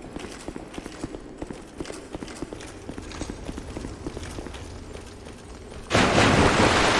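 Footsteps clank steadily on stone.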